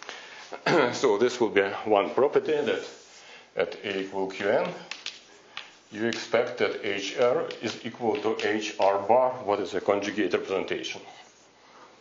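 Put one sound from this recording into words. A man lectures calmly in a room that echoes a little.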